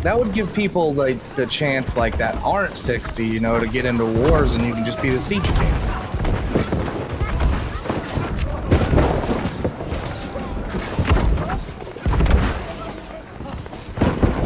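Magic blasts and weapon impacts crash repeatedly during a fight.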